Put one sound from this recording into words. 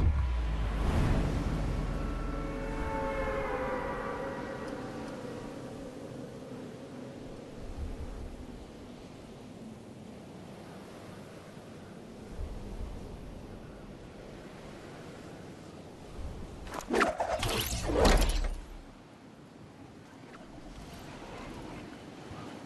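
Wind rushes past steadily during a fast fall.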